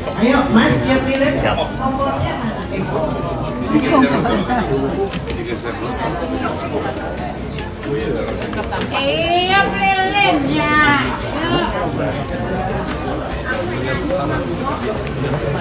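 A woman talks close to a phone microphone with animation.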